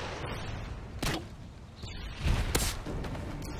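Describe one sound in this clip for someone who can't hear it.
A gun fires a few quick shots.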